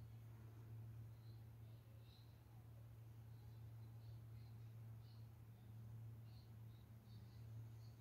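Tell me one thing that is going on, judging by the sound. A brush strokes softly across canvas.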